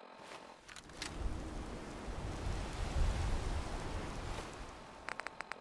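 Waves wash against a shore in a steady rush of wind.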